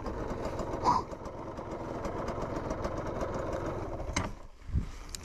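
A motorcycle engine runs as the bike rides over a rough dirt track.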